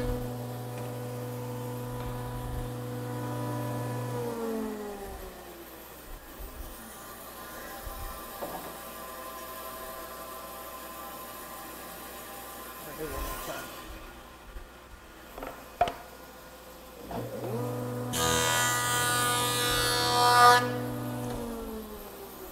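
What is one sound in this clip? A woodworking machine motor hums steadily, then winds down.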